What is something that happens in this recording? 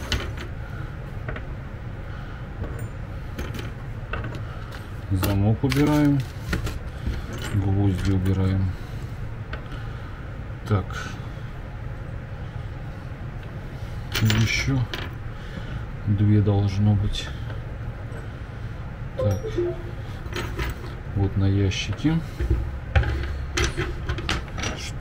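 Small plastic pieces click and rattle on a table.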